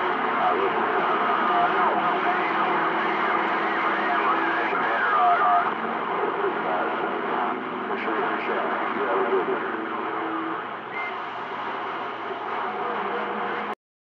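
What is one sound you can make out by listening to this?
A radio receiver crackles and hisses with static.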